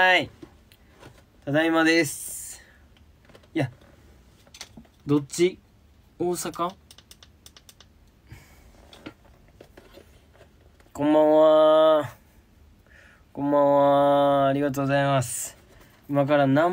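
A young man talks with animation into a microphone, sometimes drawing out long, sung greetings.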